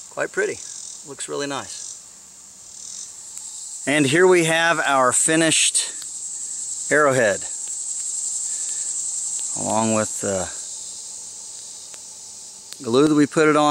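A man talks calmly and close by, with pauses.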